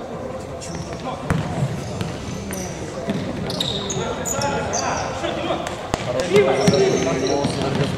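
A ball is kicked with sharp thuds in a large echoing hall.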